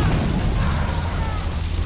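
A vehicle engine roars as a van drives.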